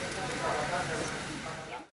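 Fingers tap on a laptop keyboard.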